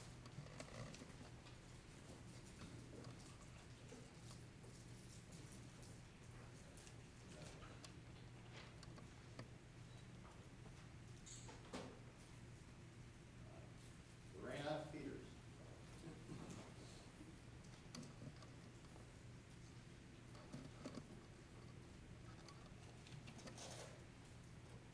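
An elderly man speaks calmly at a distance.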